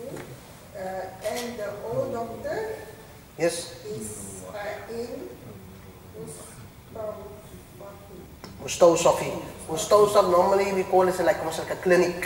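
A man speaks calmly in a small room, growing more animated.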